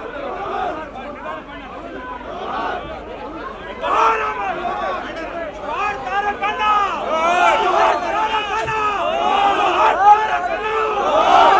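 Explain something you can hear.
A large crowd of men shouts and chants loudly outdoors, growing louder.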